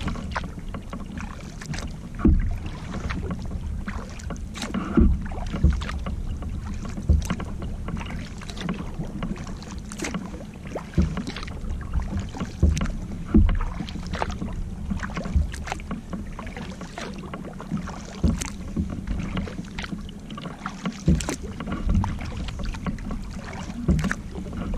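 Water laps against a kayak hull.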